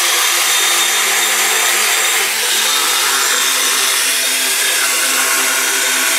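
A power grinder whines loudly as it grinds into stone.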